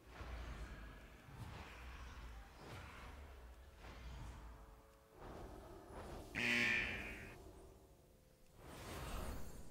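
Magic spell sounds whoosh and crackle in a fast fight.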